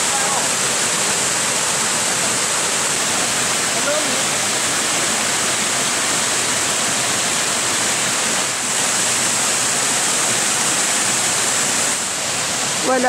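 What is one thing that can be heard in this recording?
Water rushes and splashes steadily over a waterfall.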